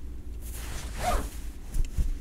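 A zipper is pulled open.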